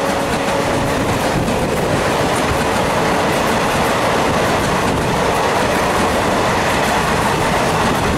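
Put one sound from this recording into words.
A passing train roars loudly close by, its wheels clattering rapidly over the rail joints.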